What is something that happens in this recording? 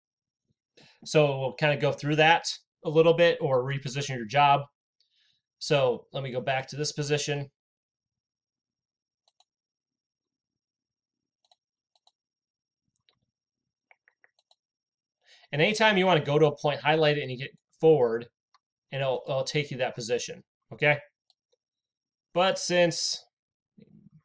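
A man speaks calmly and closely into a microphone, pausing now and then.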